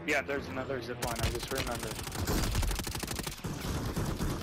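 Gunshots crack rapidly.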